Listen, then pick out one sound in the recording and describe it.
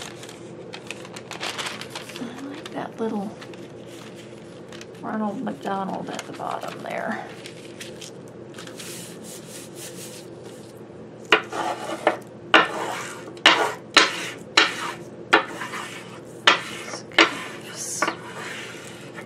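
A sheet of thin paper rustles as hands handle it.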